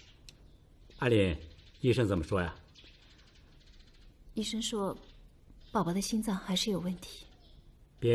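A woman speaks calmly and quietly nearby.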